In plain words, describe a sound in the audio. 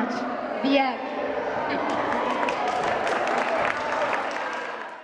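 A small audience claps and cheers.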